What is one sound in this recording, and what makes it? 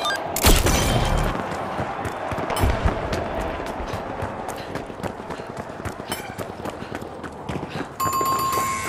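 Footsteps tap on hard stone in a large echoing hall.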